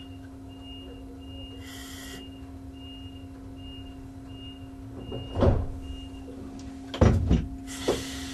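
A train engine hums steadily.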